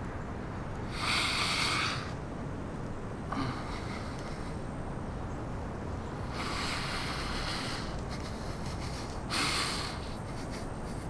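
An elderly man sighs heavily close by.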